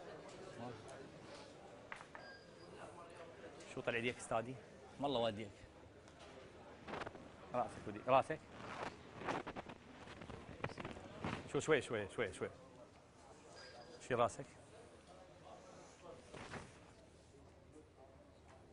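A crowd of men murmurs and chatters in the background.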